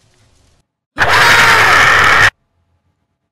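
A young man screams in fright.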